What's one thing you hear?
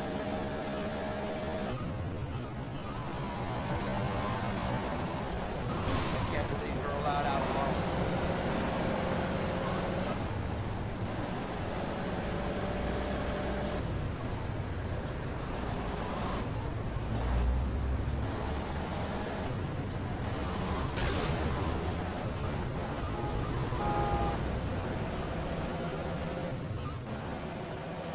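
A car engine roars steadily as a car speeds along.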